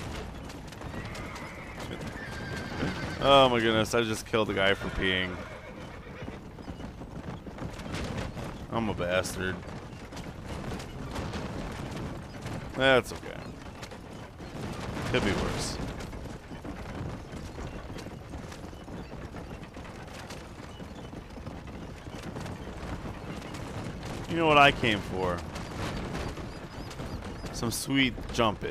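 Horse hooves clop on a dirt trail.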